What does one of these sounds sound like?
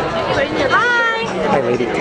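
A young woman speaks excitedly close by.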